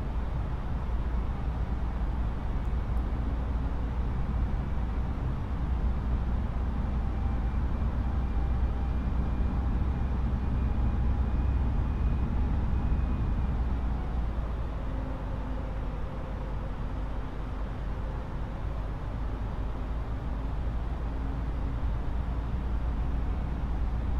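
Jet engines drone steadily in a cockpit in flight.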